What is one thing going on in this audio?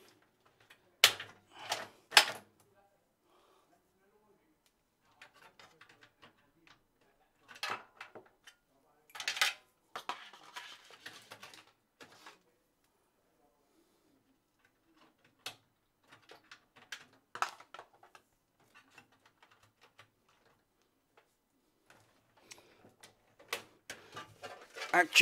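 Small items clatter and knock on a wooden table.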